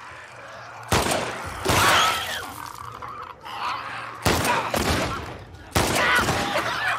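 Pistol shots bang loudly.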